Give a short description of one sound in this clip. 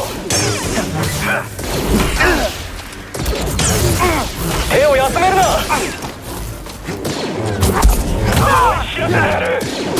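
A lightsaber hums and swooshes through the air.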